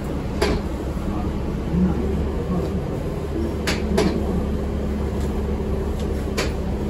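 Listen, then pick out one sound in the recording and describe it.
A bus engine hums low and steady from inside the cabin.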